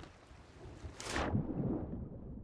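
A body splashes into the sea.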